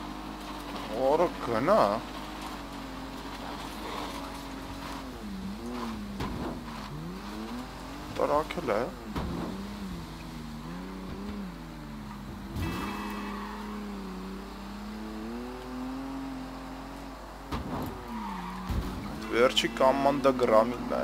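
Tyres skid and squeal in short bursts.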